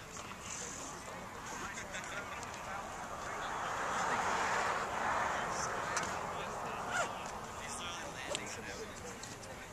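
A group of young men chat and murmur nearby outdoors.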